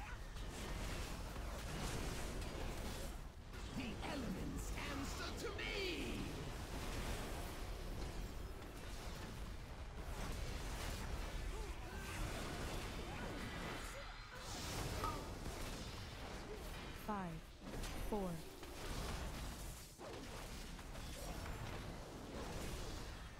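Spell effects whoosh and crackle in a fast battle.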